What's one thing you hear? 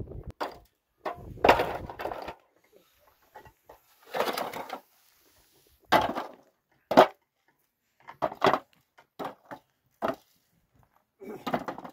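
Stones clack against each other as they are dropped into a metal bowl.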